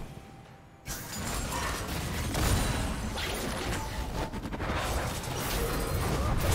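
Magic spells blast and crackle in a busy fight.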